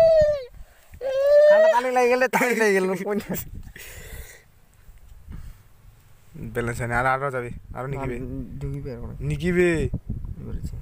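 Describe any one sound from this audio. A young man talks briefly with animation.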